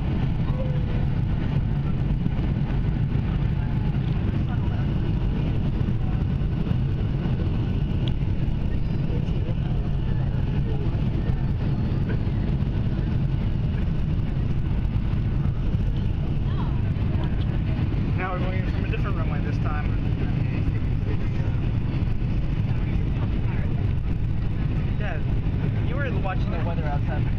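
A jet engine roars steadily in the cabin of a plane in flight.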